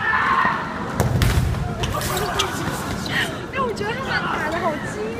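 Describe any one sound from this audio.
Inflatable bubbles thump as players bump into each other.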